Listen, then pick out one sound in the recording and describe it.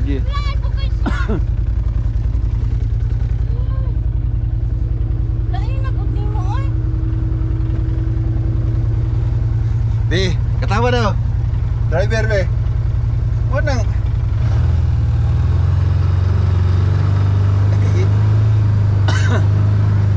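An off-road buggy engine rumbles steadily and grows louder as it speeds up.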